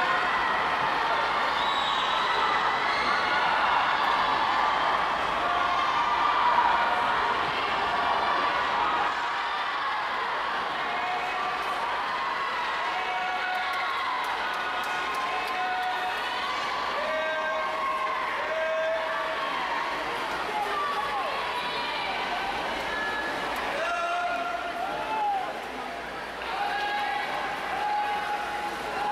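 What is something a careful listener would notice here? A crowd of young spectators cheers and shouts in a large echoing hall.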